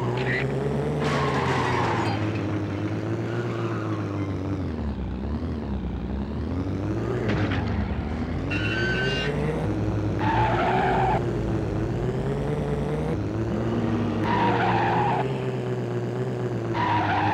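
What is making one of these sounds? Tyres screech in short bursts as a car skids.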